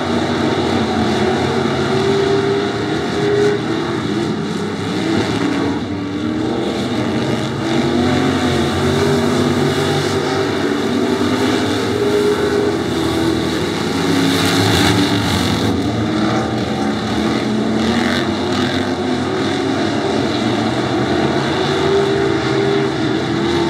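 Car engines rev up and down through the turns.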